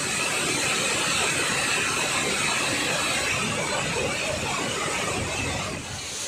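Water gushes and roars through open dam gates.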